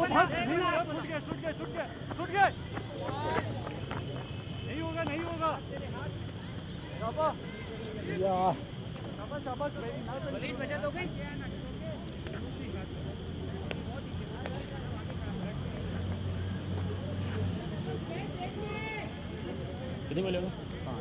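Men call out and talk loudly outdoors, close by.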